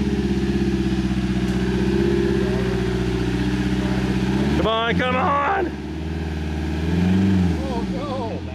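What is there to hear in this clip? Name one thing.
A vehicle's engine rumbles and revs.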